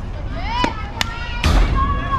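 A bat cracks sharply against a softball.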